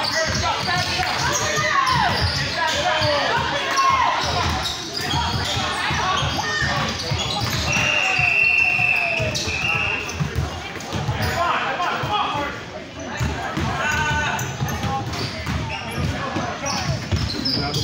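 A crowd of spectators chatters and shouts in a large echoing gym.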